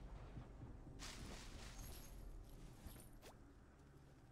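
Leaves rustle as a bush is searched.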